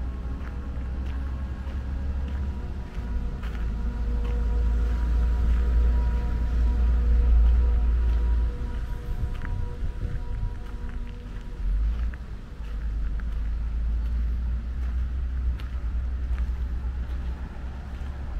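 Wind blows in gusts outdoors.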